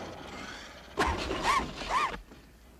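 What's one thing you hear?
A young boy speaks nearby.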